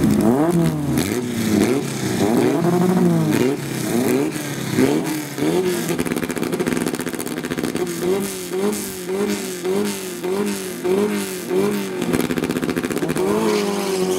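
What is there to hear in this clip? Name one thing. A race car engine revs loudly in short, repeated bursts.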